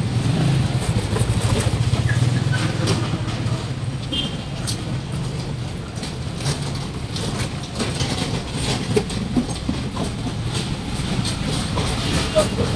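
Footsteps scuff on pavement close by.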